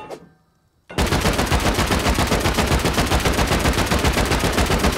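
A rifle fires rapidly in a long burst.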